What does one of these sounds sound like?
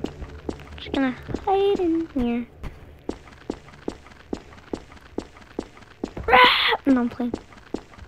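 Footsteps thud at a steady pace on a hard floor.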